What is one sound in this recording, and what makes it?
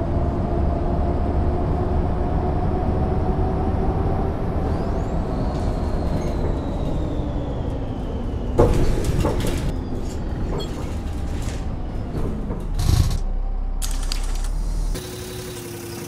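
A bus engine hums steadily as the bus drives along.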